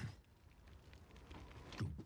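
A young man speaks quietly close to a microphone.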